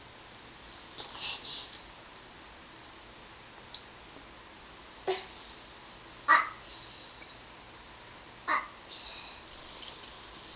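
A young girl squeals and babbles playfully close by.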